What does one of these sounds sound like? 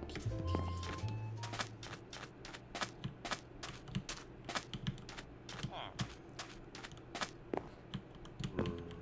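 Footsteps tap quickly and evenly on a hard floor.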